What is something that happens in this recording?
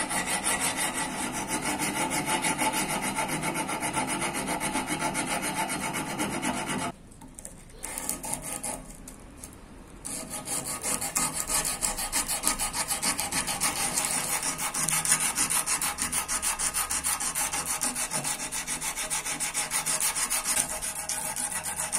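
A file rasps against a steel blade in quick, rapid strokes.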